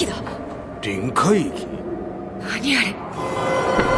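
A woman asks a startled question.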